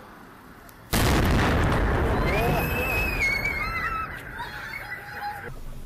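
A large fire roars and crackles outdoors.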